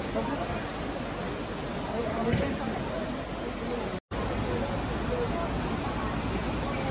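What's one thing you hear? Water rushes and splashes outdoors.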